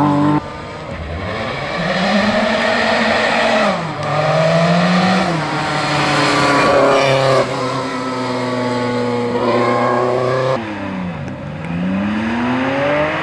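A rally car engine revs hard and roars past, changing gear.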